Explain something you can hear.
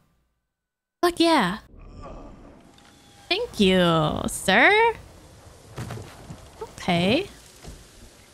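A young woman speaks animatedly into a microphone, close by.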